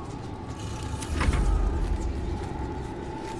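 Magic crackles and hums with a low rumble.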